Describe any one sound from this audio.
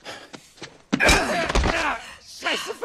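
A body thuds hard to the ground.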